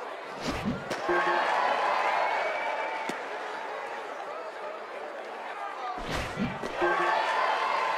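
A crowd cheers in a stadium.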